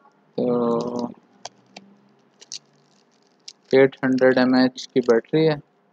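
Plastic wrapping crinkles as it is peeled off.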